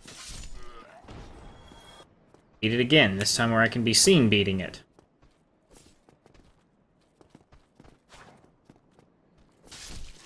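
A sword slashes and strikes with sharp hits.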